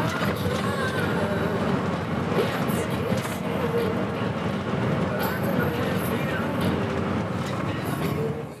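A vehicle engine rumbles steadily while driving.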